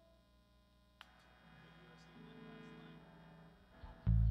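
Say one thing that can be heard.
An electric guitar plays sustained notes.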